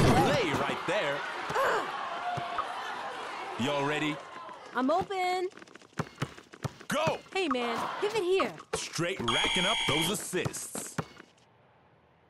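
A basketball bounces on a hard court.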